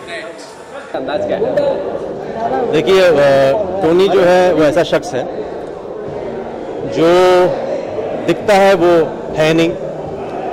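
A middle-aged man speaks calmly and close into a microphone.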